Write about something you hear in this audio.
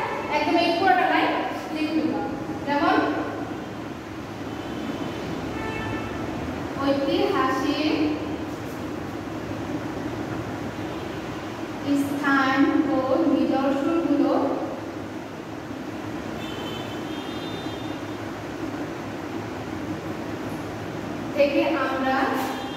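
A woman speaks calmly, as if teaching, close to a microphone.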